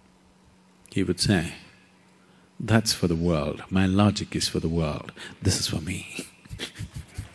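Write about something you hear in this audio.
An elderly man speaks calmly and expressively into a microphone.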